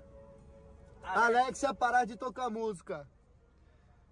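A young man speaks close by, with animation.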